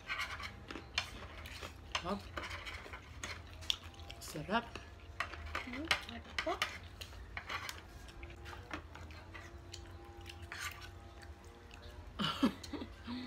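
Fingers pick at food with soft clicks and rustles.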